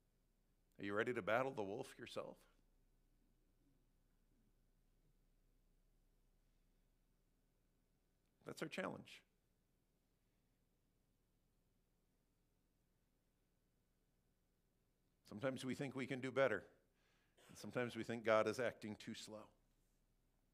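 A man speaks calmly through a headset microphone, in short phrases with long pauses.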